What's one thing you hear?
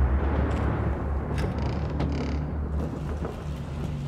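A creaky door swings open.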